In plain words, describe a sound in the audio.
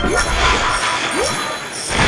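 Water splashes loudly as a large shark bursts out of the sea.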